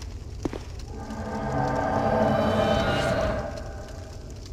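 A shimmering magical chime swells and fades.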